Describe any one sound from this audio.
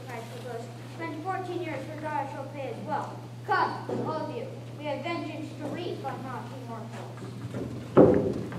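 Young women sing together on a stage, heard from the audience.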